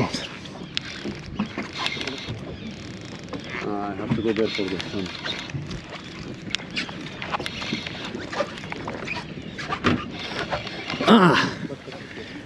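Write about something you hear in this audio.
A fishing reel whirs and clicks as its handle is cranked.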